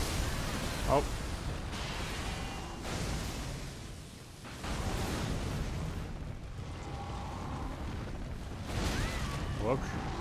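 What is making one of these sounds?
Magic blasts crackle and roar.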